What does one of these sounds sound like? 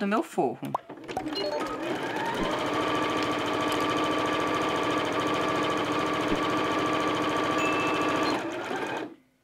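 A sewing machine runs steadily, stitching fabric.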